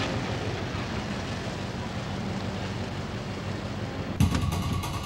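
A van engine rumbles as the van drives away.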